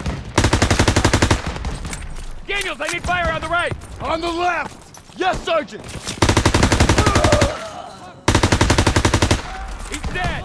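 A machine gun fires rapid bursts up close.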